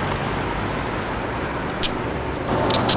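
Handcuffs click shut.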